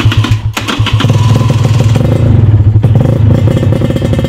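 A motorcycle engine revs up briefly and settles back.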